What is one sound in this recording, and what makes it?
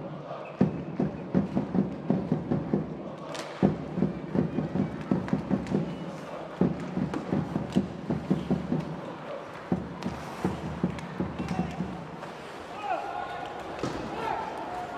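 Hockey sticks clack against the puck and against each other.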